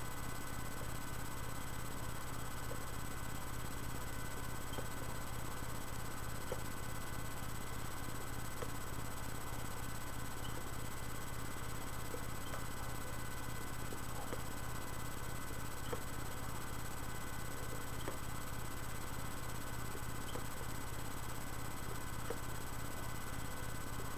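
A man puffs on a pipe with soft smacking of the lips.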